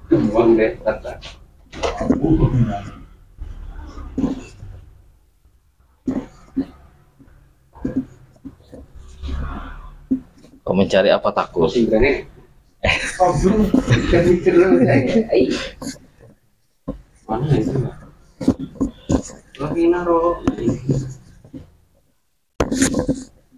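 A young man groans and mumbles close by.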